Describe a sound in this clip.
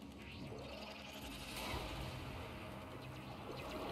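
A sword slashes with a whooshing swish.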